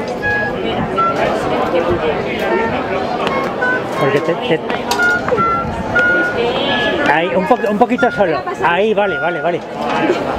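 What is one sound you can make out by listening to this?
Several musicians warm up nearby, playing short scattered notes on wind instruments.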